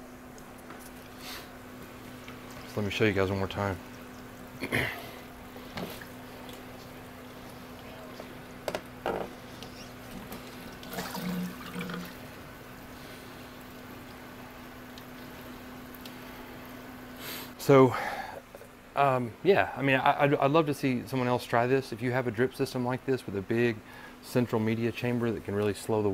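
Water trickles and splashes steadily.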